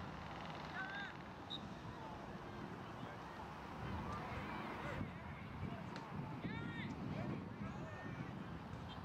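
Young players shout to each other across an open field, far off.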